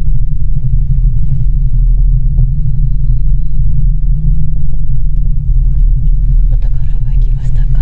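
A cable car rumbles with a steady low hum as it glides along its cable.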